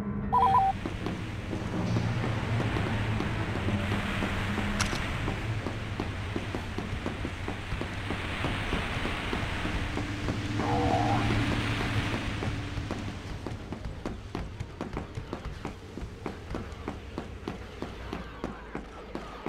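Footsteps clatter quickly on a hard floor.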